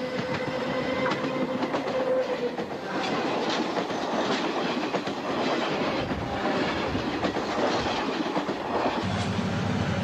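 A train rushes past close by, rumbling and clattering.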